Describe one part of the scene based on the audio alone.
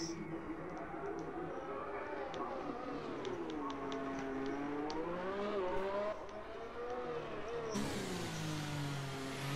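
A racing car engine whines loudly, its pitch rising and falling.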